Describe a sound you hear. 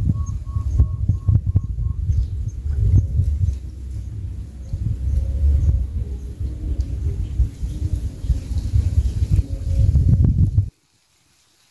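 Water churns and rumbles, heard muffled from underwater.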